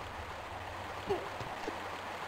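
A climber's hands grab onto a stone ledge with a soft thud.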